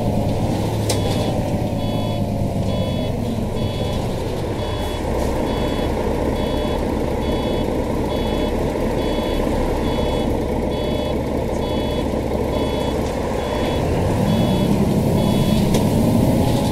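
A turn signal ticks at a steady pace.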